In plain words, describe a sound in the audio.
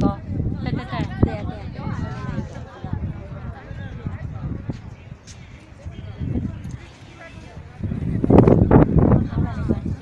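Several adults talk nearby outdoors.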